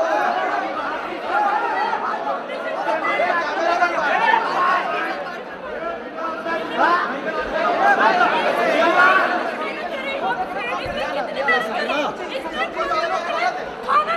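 A woman shouts angrily close by.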